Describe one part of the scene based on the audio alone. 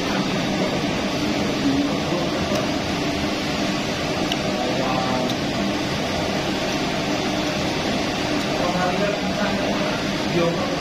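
Metal cutlery clinks against a ceramic bowl.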